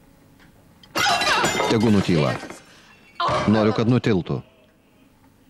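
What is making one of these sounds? An elderly woman shouts angrily.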